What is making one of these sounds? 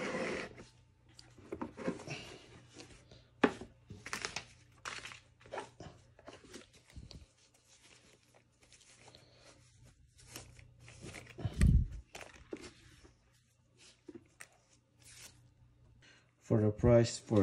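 A cloth dust bag rustles and crinkles as hands handle it.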